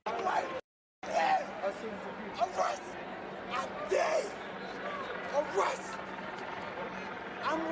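A man shouts defiantly in a noisy crowd outdoors.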